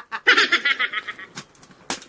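A young man laughs loudly.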